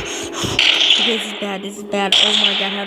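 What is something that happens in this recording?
A monster growls loudly.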